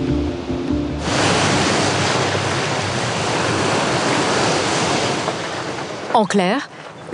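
Water rushes and splashes against the side of a moving boat.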